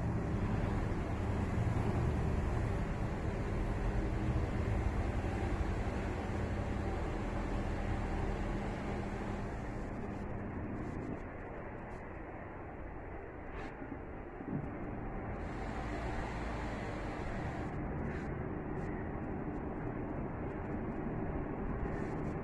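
An electric gate motor hums steadily as a metal gate rolls along its track.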